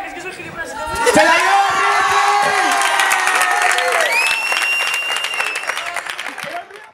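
A group of young people cheer and shout excitedly.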